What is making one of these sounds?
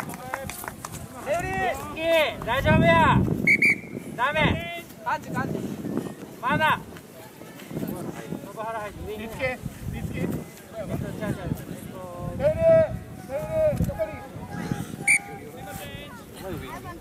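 Young women shout and call out to each other outdoors across an open field.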